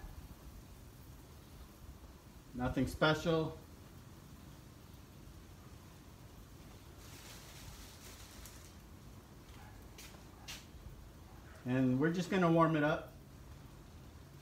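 Bread buns are set down softly on a griddle.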